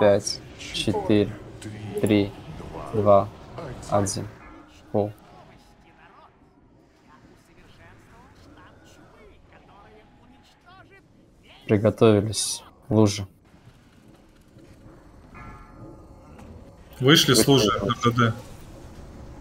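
Magic spells crackle and whoosh in a game battle.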